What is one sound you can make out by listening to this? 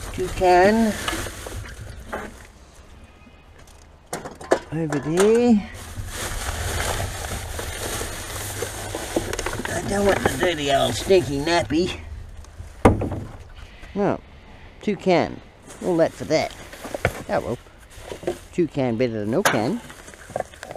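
Plastic bags rustle and crinkle as hands rummage through them.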